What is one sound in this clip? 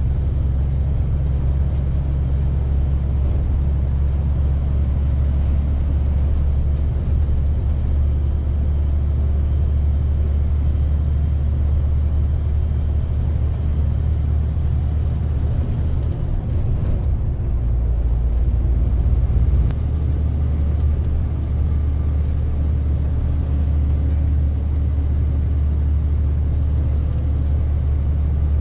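Tyres roll on the road with a steady rumble.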